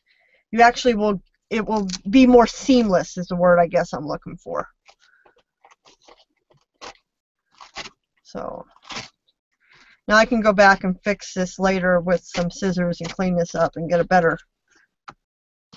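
Stiff paper pages rustle and flap as they are turned.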